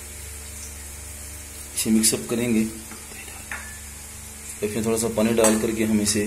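A metal spoon scrapes and stirs through dry powder in a plastic bowl.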